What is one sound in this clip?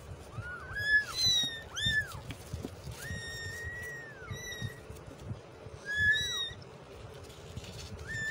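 Young kittens mew in high-pitched cries.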